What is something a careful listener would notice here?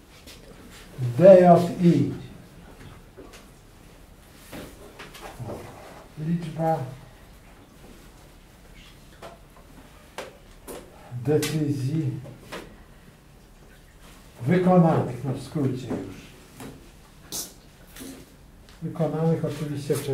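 An older man speaks calmly in short phrases, close by.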